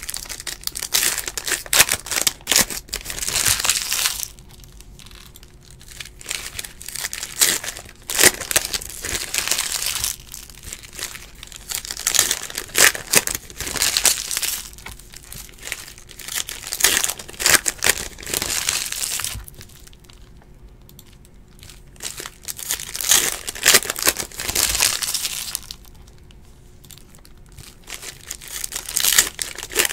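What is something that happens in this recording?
Foil card packs crinkle and tear open in a person's hands.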